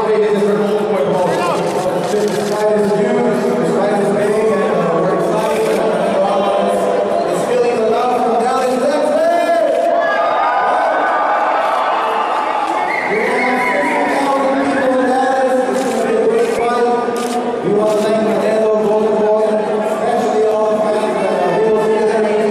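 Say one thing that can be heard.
A man speaks with animation into a microphone, heard over loudspeakers in a large echoing hall.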